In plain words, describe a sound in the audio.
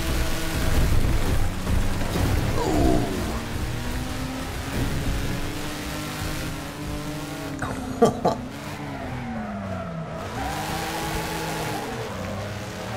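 A car engine roars and revs, rising and falling in pitch.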